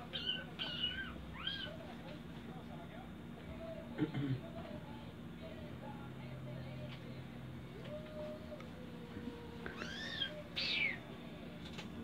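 A baby squeals and babbles up close.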